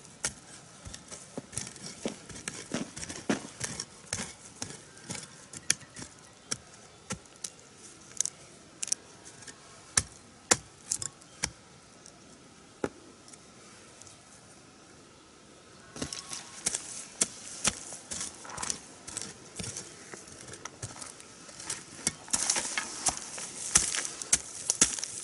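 A hoe chops into dry soil with repeated thuds and scrapes.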